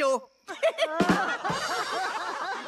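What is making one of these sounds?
A drum kit is struck with sticks.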